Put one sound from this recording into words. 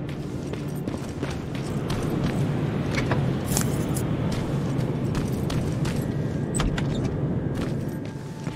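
Footsteps crunch on gravel and rubble.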